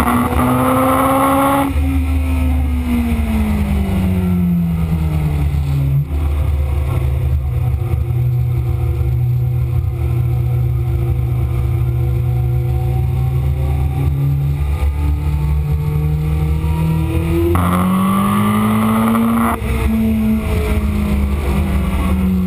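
A motorcycle engine roars loudly at high revs, falling in pitch as it slows and rising again as it speeds up.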